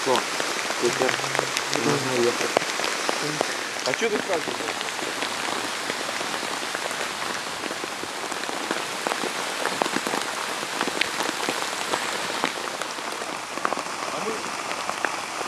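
Rain patters steadily on a tent.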